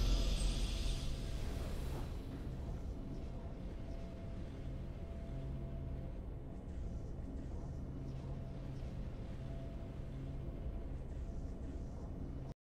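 Triumphant game music plays steadily.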